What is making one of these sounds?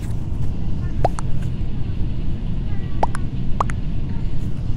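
Short electronic game chimes ring out as votes are cast.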